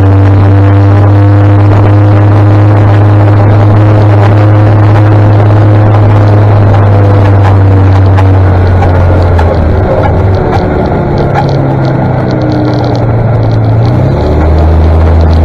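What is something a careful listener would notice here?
A tractor engine rumbles ahead on the road.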